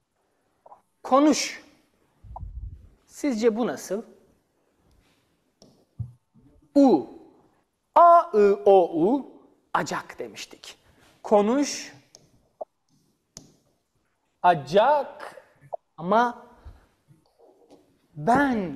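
A man talks with animation, explaining in a lively, teaching tone.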